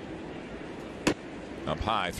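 A ball smacks into a catcher's mitt with a sharp pop.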